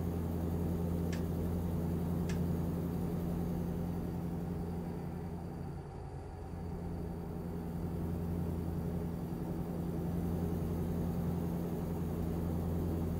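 A truck engine hums steadily at low revs.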